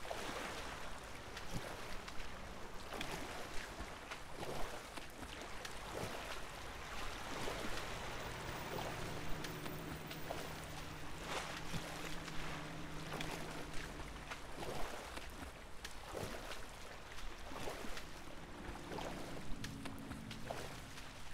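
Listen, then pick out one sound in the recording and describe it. A swimmer splashes through open water.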